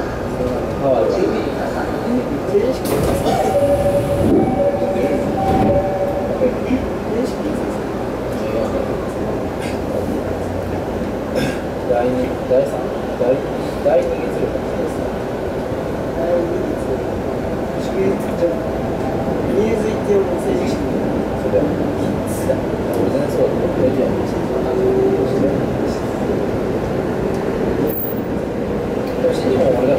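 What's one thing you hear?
Train wheels click and squeal on the rails.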